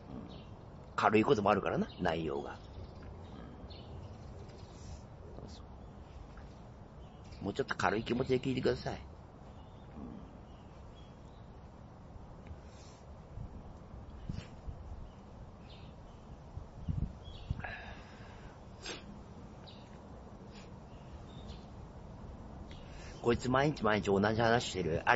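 A middle-aged man speaks calmly in short bursts, close to the microphone, outdoors.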